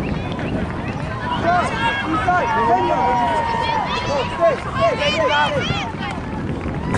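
Young women call out to each other across an open field, heard from a distance.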